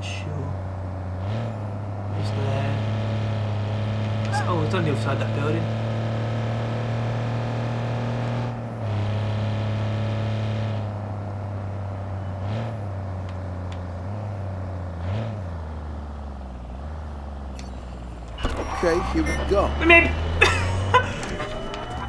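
A heavy truck engine hums steadily as it drives.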